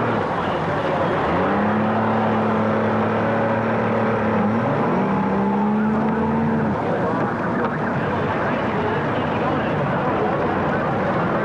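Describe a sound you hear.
Water splashes and churns behind a boat.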